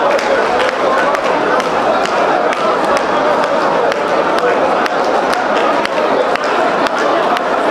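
People clap their hands in a steady rhythm.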